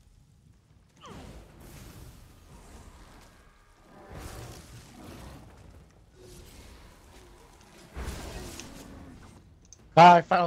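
Weapon blows and magic blasts crack during a fight.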